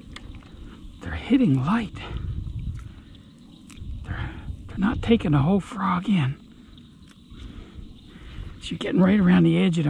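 Wet weeds rustle and squelch as hands pull them off a fishing lure.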